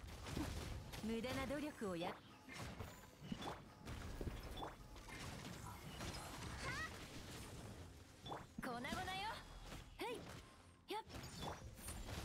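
Sword slashes and magic blasts clash in a fast battle.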